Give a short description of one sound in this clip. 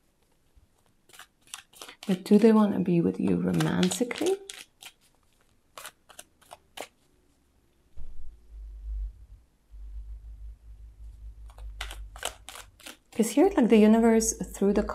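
Playing cards are shuffled and riffled by hand.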